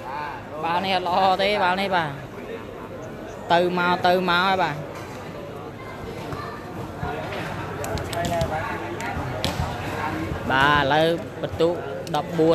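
A large crowd chatters in an echoing hall.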